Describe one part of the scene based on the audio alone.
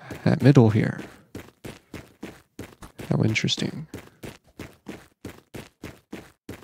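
Footsteps tap quickly and steadily on a hard floor.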